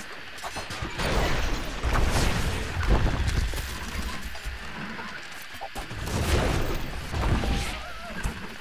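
Catapult stones crash into a stone wall with heavy rumbling thuds.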